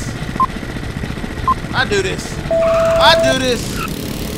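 A countdown beeps twice, then sounds one long higher beep.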